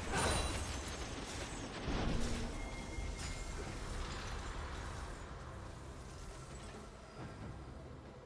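Magic spells whoosh and crackle in short bursts.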